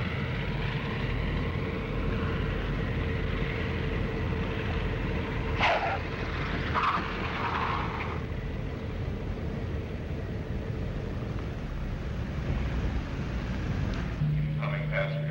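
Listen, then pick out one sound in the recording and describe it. Tyres rumble on a runway.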